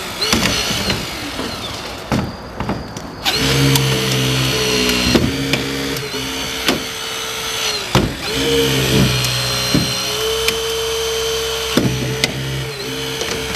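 Metal creaks, pops and snaps as a car door is cut.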